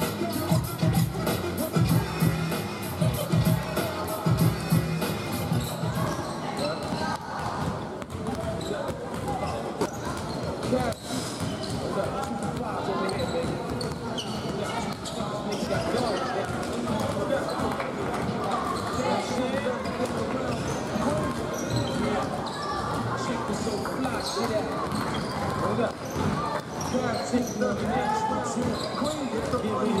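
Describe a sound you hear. Young players and onlookers chatter in the echoing hall.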